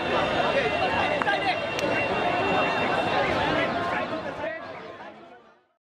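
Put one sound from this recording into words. A crowd chatters in a busy street and slowly fades away.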